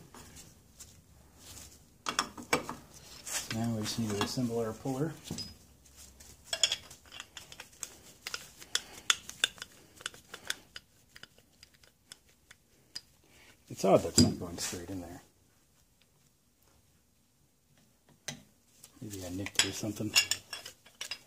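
Metal tools clink and scrape against metal parts.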